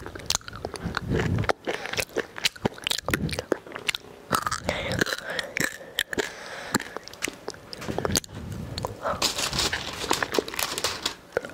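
A young girl chews crunchy food with loud, wet mouth sounds right against a microphone.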